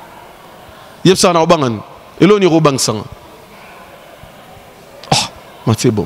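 A man speaks into a microphone in short bursts, with pauses between them.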